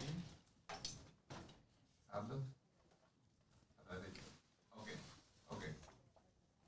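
A middle-aged man speaks calmly into a microphone, in bursts with short pauses.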